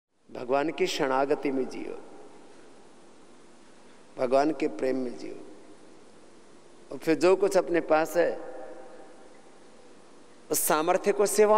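A man speaks calmly into a close microphone in short bursts, with pauses between.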